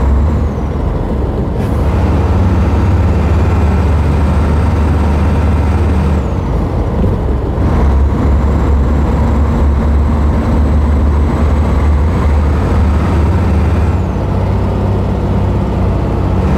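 Tyres roll on a road surface.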